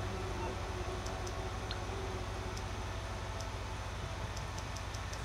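A phone menu clicks softly several times.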